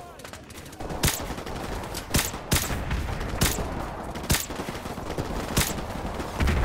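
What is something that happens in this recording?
Muffled rifle shots crack one after another.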